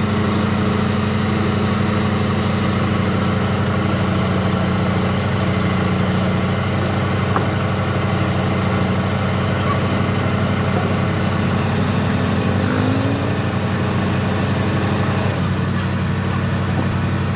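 A diesel engine idles loudly and steadily close by, with a low throbbing rumble.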